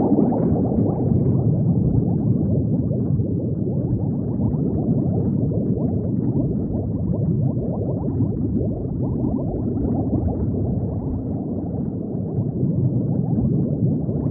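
Underwater bubbles gurgle and burble steadily.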